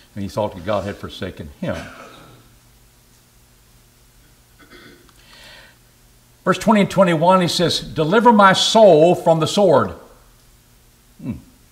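A middle-aged man speaks with emphasis into a microphone in a slightly echoing room.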